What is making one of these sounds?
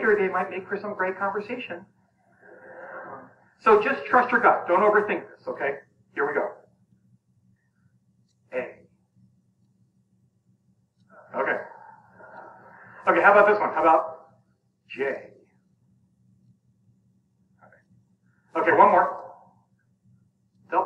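A middle-aged man speaks with animation through a microphone, with pauses between phrases.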